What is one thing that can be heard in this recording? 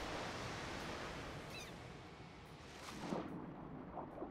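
A waterfall roars steadily, then drops away.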